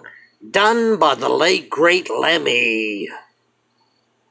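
A middle-aged man speaks loudly and animatedly close to the microphone.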